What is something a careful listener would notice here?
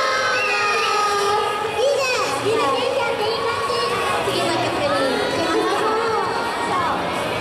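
Music plays loudly through loudspeakers in a large echoing hall.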